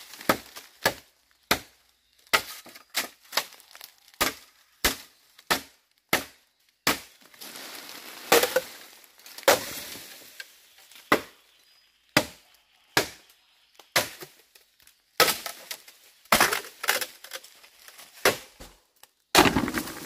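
A machete chops into bamboo with sharp knocks.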